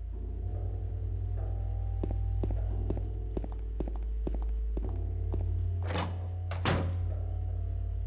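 Footsteps thud along a hard floor.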